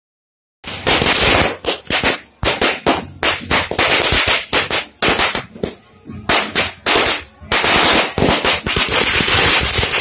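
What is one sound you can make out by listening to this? Firecrackers burst and crackle loudly in rapid bangs, close by and outdoors.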